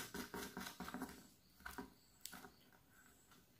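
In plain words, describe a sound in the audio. A hand taps and scrapes small parts against a thin board.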